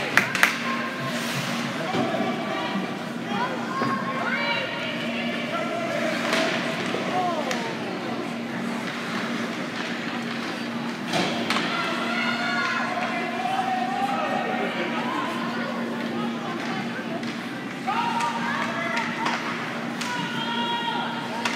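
Hockey sticks click against a puck.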